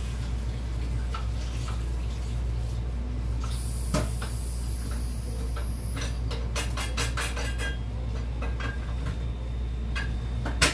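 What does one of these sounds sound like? Dishes clink and clatter.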